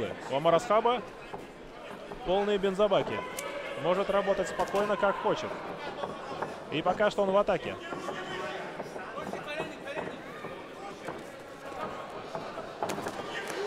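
A crowd murmurs and calls out in the background.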